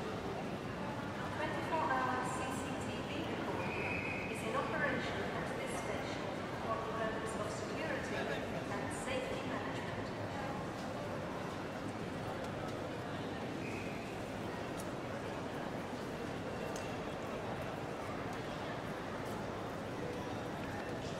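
A crowd of people murmurs in a large echoing hall.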